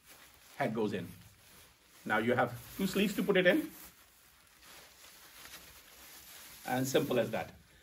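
A plastic gown rustles as a man puts it on.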